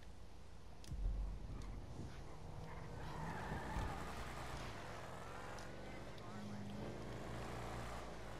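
A car engine hums and revs as the car drives off.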